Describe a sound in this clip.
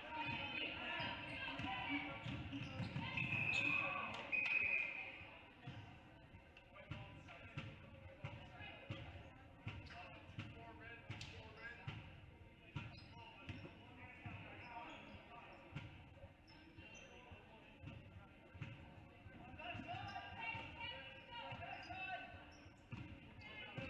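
A crowd cheers and chatters in the stands.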